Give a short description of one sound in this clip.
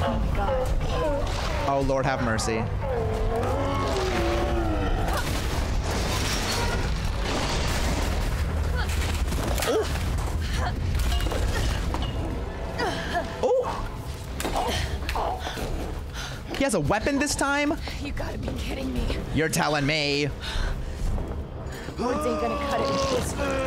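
A woman's voice speaks tensely from a game.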